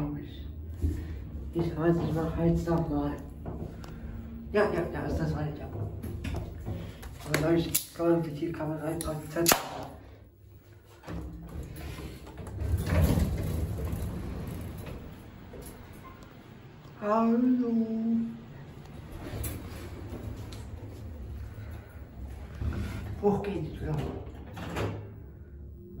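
A young man talks calmly close to the microphone.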